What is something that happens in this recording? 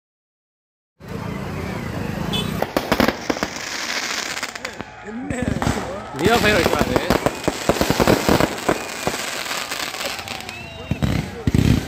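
Fireworks burst and crackle loudly overhead.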